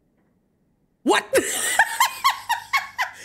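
A young man laughs loudly into a close microphone.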